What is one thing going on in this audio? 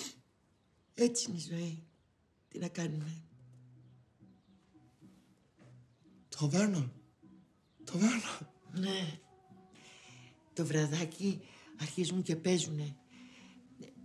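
An elderly woman speaks warmly and with animation nearby.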